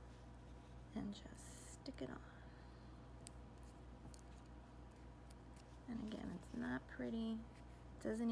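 Fingers handle a small metal ring with faint clicks and taps.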